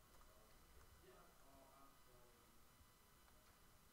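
A deck of playing cards is shuffled.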